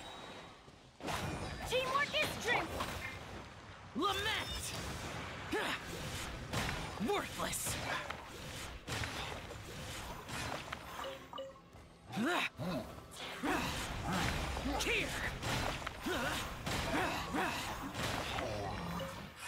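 Magic blasts and whooshes burst again and again in a fast fight.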